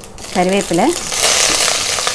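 Leaves dropped into hot oil sizzle loudly.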